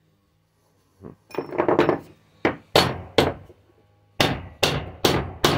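A hammer strikes metal repeatedly, hard and sharp.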